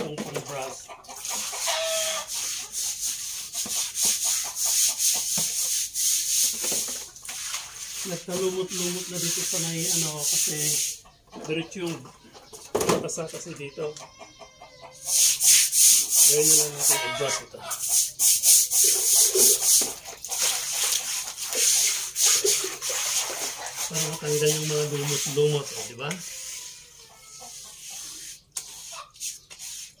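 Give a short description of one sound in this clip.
Dishes clink and clatter against each other.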